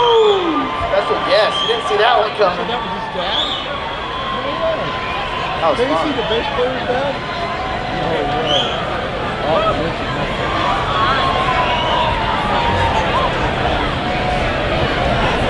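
A live band plays loud amplified music with a bass guitar.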